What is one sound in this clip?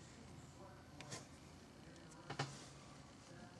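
Hands turn a wooden pipe, with a few soft knocks and rubs.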